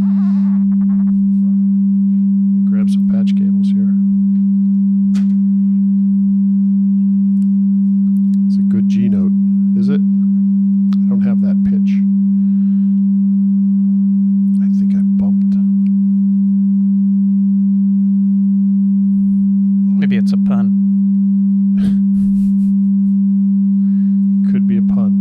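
A middle-aged man talks casually into a close microphone, in short bursts.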